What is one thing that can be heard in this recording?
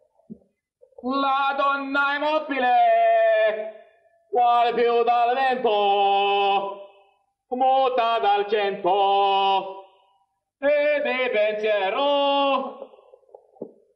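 A man sings operatically in a strong, full voice.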